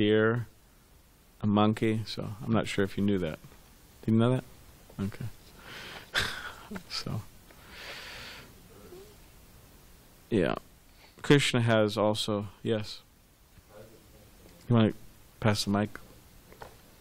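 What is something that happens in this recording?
A man speaks calmly into a microphone, reading out in pauses.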